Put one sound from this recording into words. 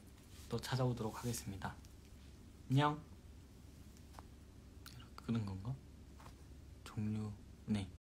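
A young man speaks softly and casually, close by.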